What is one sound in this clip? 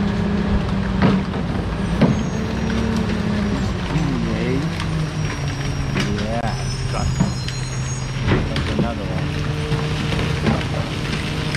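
Bins clatter and bang.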